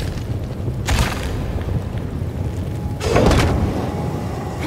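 Metal grinds and sparks crackle.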